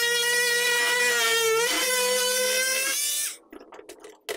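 A small rotary tool whines at high speed.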